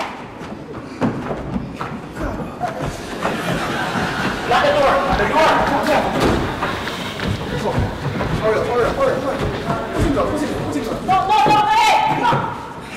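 Footsteps thud on a wooden stage.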